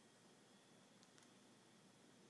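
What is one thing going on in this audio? A cat's paws tap lightly on a wooden table.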